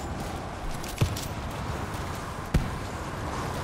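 Gunshots crack in a video game.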